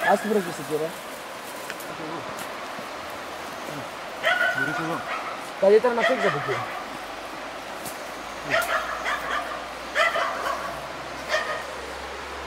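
A man talks with animation nearby, outdoors.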